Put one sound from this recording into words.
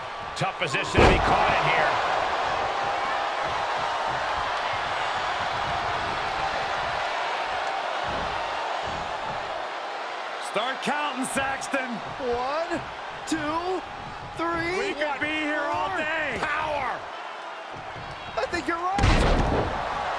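A heavy body slams hard onto a wrestling mat.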